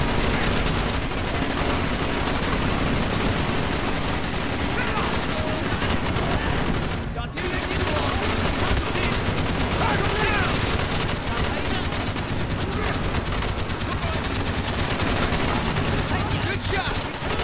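Rapid gunfire crackles and booms continuously.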